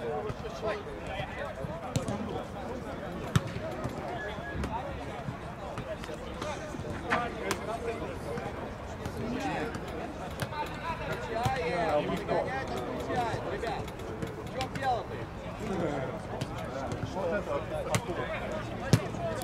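Men shout and call out outdoors across an open field.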